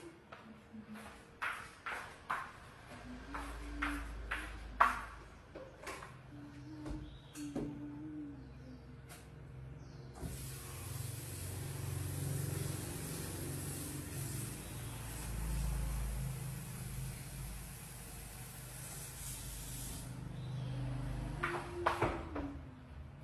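Dishes clink and clatter.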